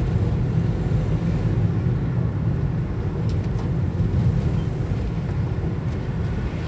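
Tyres roll over a road with a low rumble.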